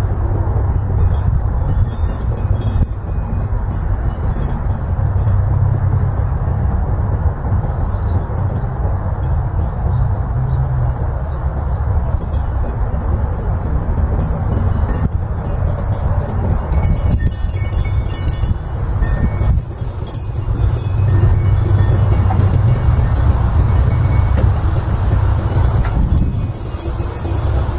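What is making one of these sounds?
Wind blows steadily against a microphone outdoors.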